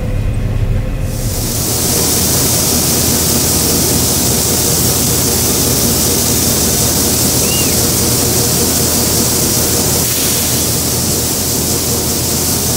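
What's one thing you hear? A combine harvester's engine rumbles steadily.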